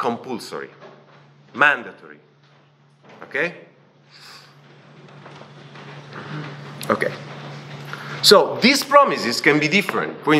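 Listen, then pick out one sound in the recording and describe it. A young man speaks calmly through a microphone in an echoing hall.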